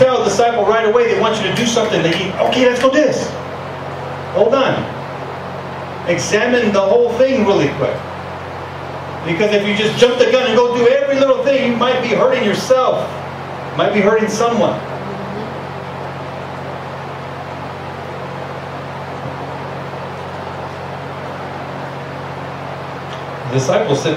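A man speaks through a microphone with long pauses.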